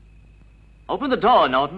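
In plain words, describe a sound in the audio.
A man speaks up close in a low voice.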